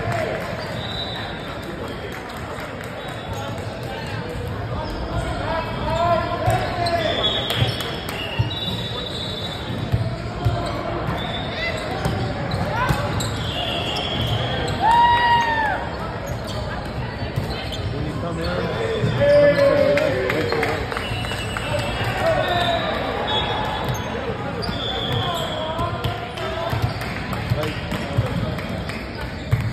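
Young players call out and shout to each other in a large echoing hall.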